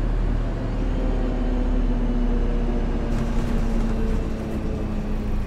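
Road noise rumbles under the bus.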